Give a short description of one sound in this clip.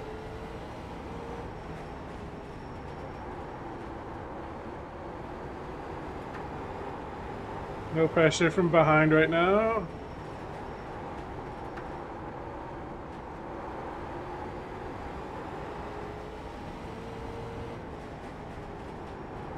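A race car engine drones steadily, rising and falling slightly with speed.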